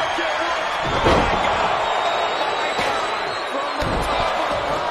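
A heavy body slams onto a wrestling ring mat with a thud.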